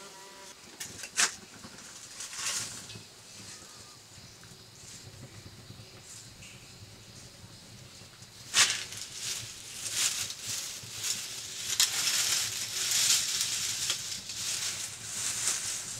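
Metal tongs clatter against a stove.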